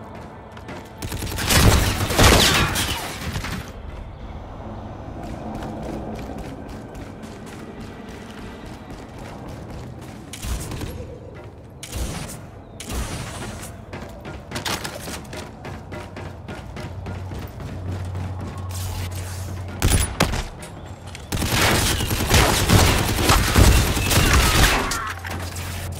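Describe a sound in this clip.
Automatic gunfire rattles in loud rapid bursts.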